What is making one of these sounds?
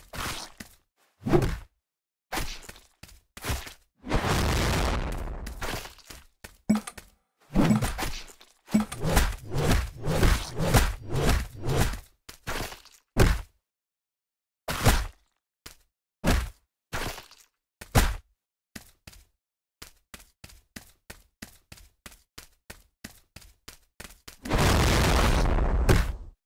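Sharp hits and clashes of a game battle ring out in quick bursts.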